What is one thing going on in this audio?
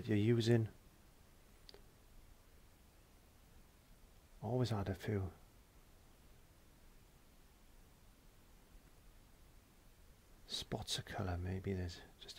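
A brush dabs softly on canvas.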